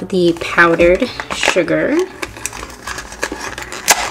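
A cardboard box is torn open.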